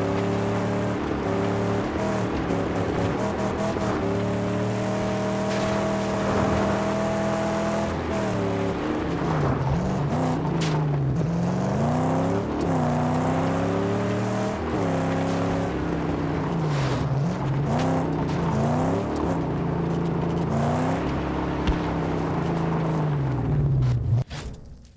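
A car engine roars and revs up and down as the car speeds along.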